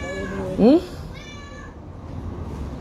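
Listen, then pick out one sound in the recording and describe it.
A woman speaks with animation close to the microphone.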